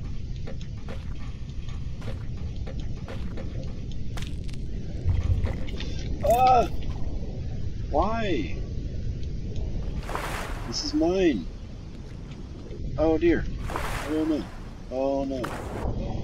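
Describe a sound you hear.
Water rumbles and bubbles steadily all around, heard from underwater.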